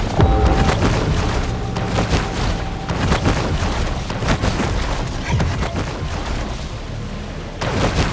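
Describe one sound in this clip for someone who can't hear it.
Water splashes and churns as a creature swims fast through it.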